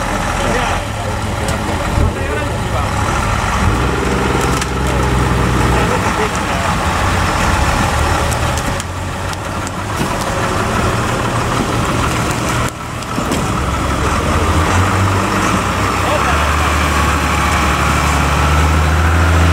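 An off-road truck engine rumbles and revs as the truck climbs over rough ground.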